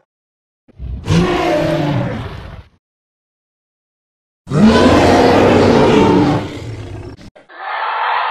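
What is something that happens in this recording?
A large animatronic dinosaur lets out loud, deep roars.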